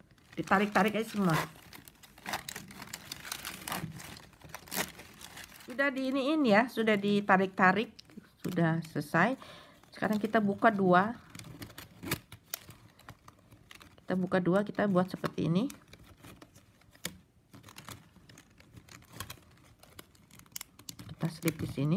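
Plastic strips rustle and click as hands weave them together.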